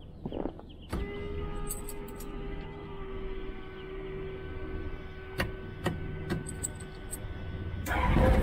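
An electronic whine starts suddenly and holds steady.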